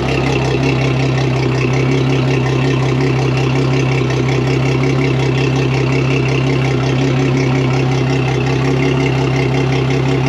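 A large outboard engine idles loudly with a steady, throbbing rumble.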